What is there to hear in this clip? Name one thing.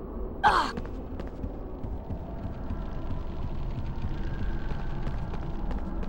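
Footsteps tap across a stone floor.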